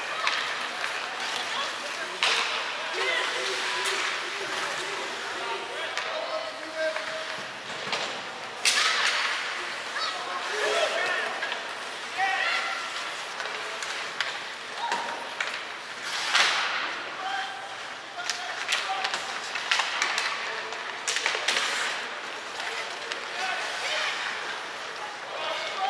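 Hockey sticks clack against the puck and each other.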